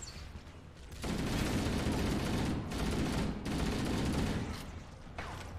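Rapid gunfire rattles in a game.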